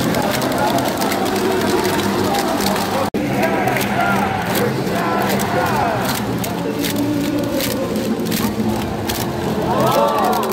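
A large stadium crowd chants and cheers loudly all around.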